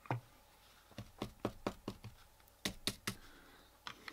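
A small plastic model clicks and taps against a hard surface.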